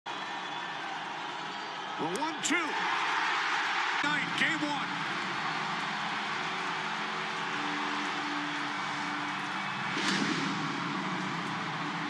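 A large crowd cheers and roars loudly in a big open stadium.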